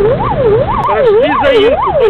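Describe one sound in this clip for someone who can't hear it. A man speaks briefly over a siren.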